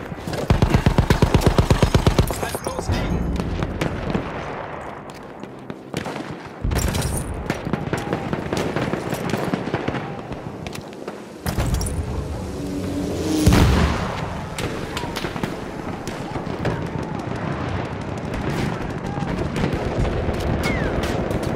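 Gunfire cracks and pops repeatedly.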